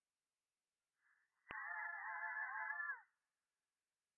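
A young woman's cartoon voice cries out in a high, shrill wail.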